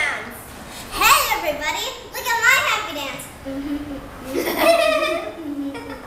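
A young girl speaks with animation close by.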